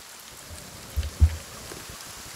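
An axe strikes wood with a dull thud.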